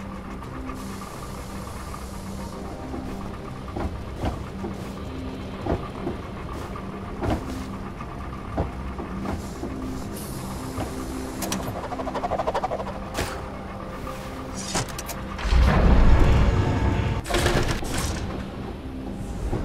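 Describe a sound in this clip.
Low, droning music plays steadily.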